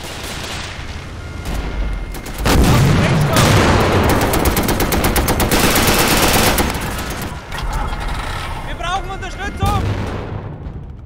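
A tank engine rumbles loudly.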